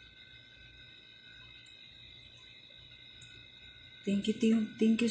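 Milk bubbles softly as it simmers in a pot.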